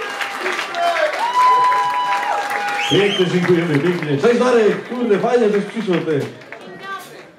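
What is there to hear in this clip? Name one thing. A crowd of men and women chatters and cheers loudly.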